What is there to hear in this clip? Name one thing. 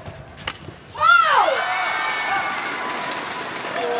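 A crowd in a large hall cheers and shouts loudly.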